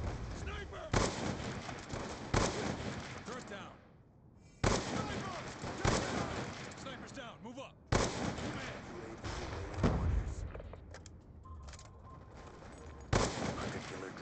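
A sniper rifle fires single sharp shots.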